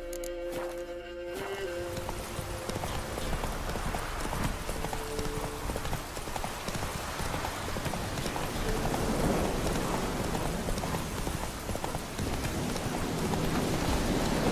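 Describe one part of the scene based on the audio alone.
A horse gallops steadily along a dirt path.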